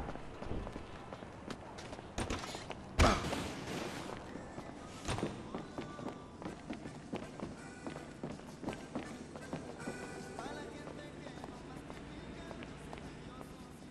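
Footsteps tap on hard floors and stairs.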